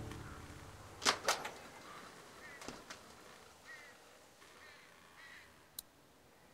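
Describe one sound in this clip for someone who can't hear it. A cab door creaks and bangs open.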